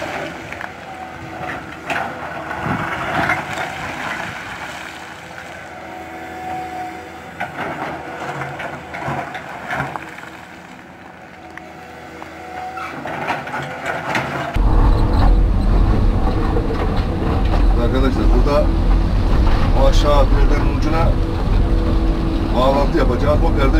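Rocks and rubble clatter and scrape under an excavator bucket.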